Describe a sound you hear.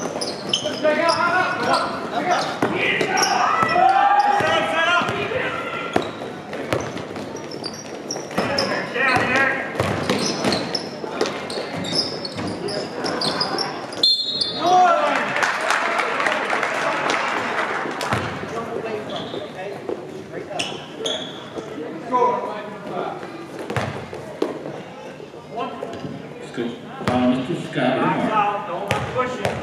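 Spectators cheer and shout.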